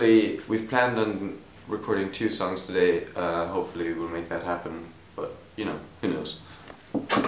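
A young man speaks calmly, close up.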